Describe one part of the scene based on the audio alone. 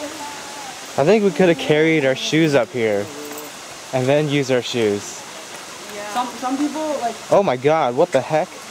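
Young women talk loudly close by.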